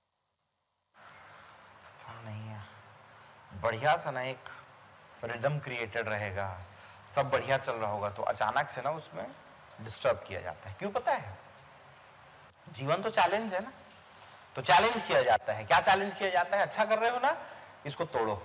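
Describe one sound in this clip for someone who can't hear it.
A man speaks with animation close to a microphone.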